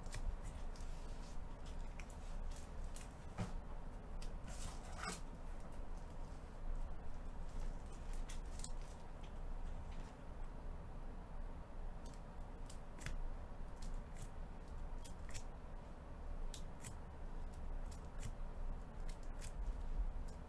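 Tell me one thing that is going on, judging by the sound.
Trading cards slide and tap against each other as they are handled.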